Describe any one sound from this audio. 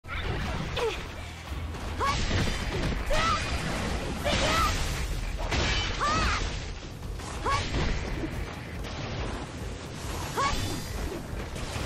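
Swords slash and strike again and again in a fast fight.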